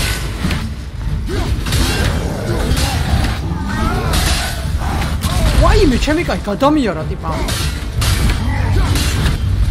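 Heavy blows and thuds of a fight land repeatedly.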